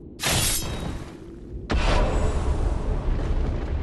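A sword slashes through flesh with a heavy impact.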